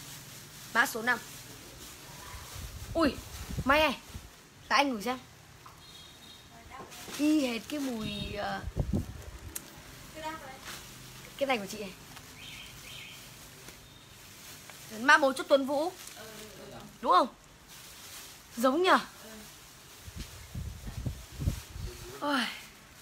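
A young woman talks close by, lively and in short bursts.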